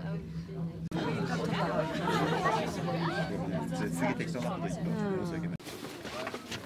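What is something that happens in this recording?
Many people chatter nearby.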